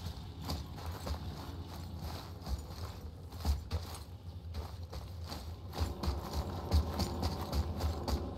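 Heavy footsteps crunch on snow and stone.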